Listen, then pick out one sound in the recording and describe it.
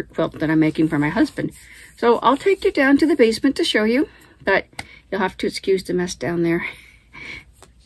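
A woman talks close by, with animation.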